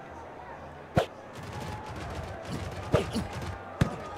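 Football players collide with sharp thuds.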